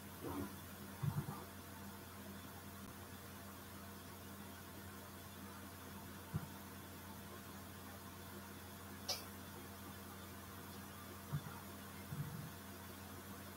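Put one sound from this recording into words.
Feet thump softly on a wooden floor.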